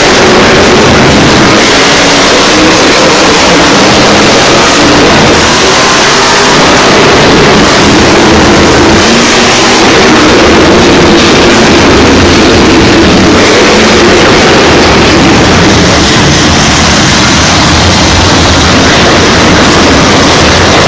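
A large crowd roars in a large echoing arena.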